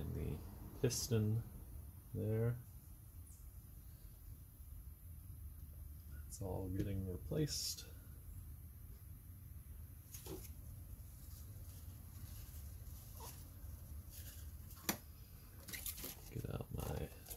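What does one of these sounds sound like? Small metal parts clink and tap against each other as they are handled.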